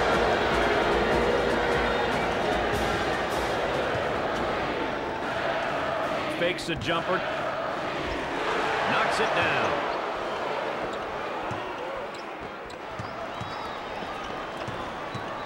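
A crowd roars steadily in a large echoing arena.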